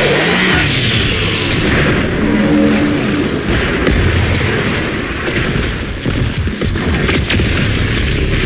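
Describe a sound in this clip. A heavy gun fires rapid blasts.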